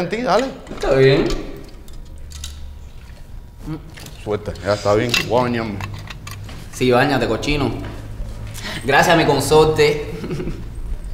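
A man speaks in a low voice nearby.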